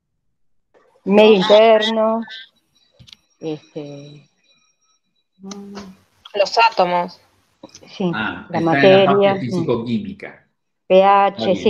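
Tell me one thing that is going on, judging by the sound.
A man talks calmly through an online call.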